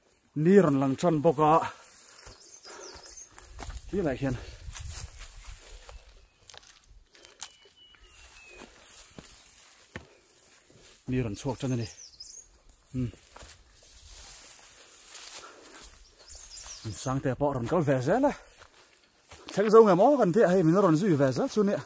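A young man talks close by, with animation.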